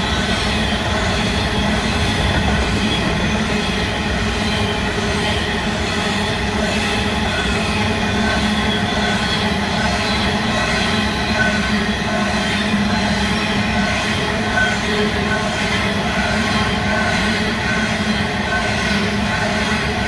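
Steel wheels clatter rhythmically over rail joints.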